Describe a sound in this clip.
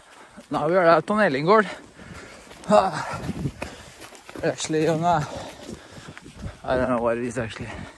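Footsteps rustle and thud quickly through wet grass.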